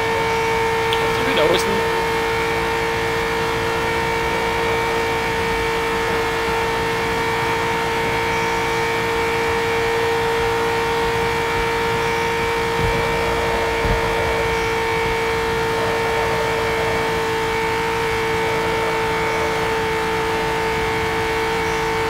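A race car engine whines steadily at high speed.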